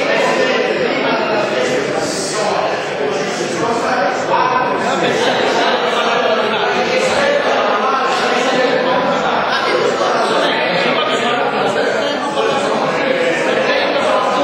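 An elderly man speaks loudly and with animation in a large echoing hall.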